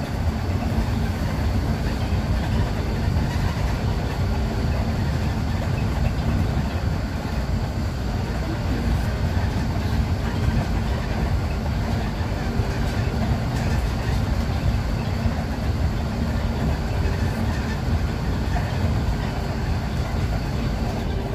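A bus rattles and vibrates over the road.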